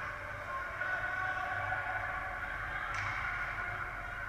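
A puck clacks off a hockey stick.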